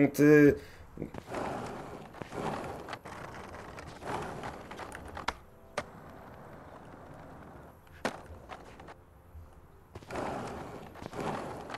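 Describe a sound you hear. Skateboard wheels roll and clatter over concrete.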